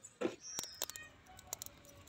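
Wood crackles as a fire burns.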